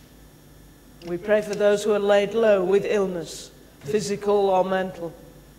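A man speaks clearly through a microphone in an echoing hall.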